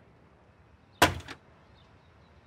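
A door latch clicks open.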